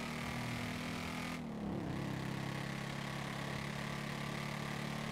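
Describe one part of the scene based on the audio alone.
A motorcycle engine hums steadily, dips briefly as it shifts gear, then settles again.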